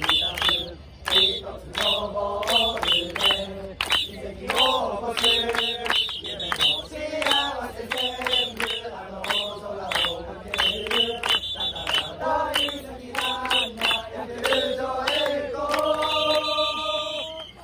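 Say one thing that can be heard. A crowd of fans sings a chant together outdoors.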